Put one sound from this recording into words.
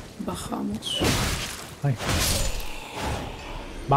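A sword swings through the air with a whoosh.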